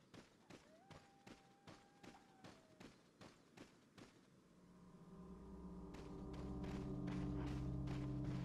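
Footsteps crunch steadily over dry leaves and dirt.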